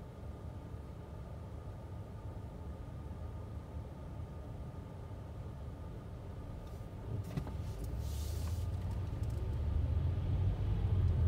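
A car engine rumbles low from inside the car, growing louder as the car starts moving.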